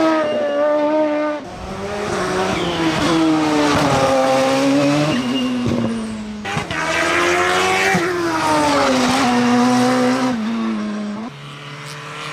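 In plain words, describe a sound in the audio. A race car engine roars and revs up as it climbs past.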